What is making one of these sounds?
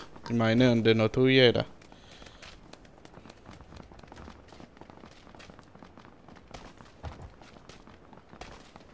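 Footsteps patter on hard ground.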